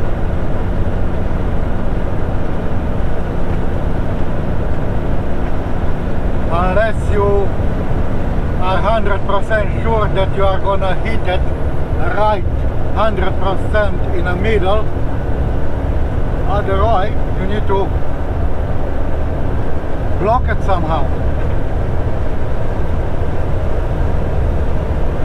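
Tyres roll steadily over a paved road.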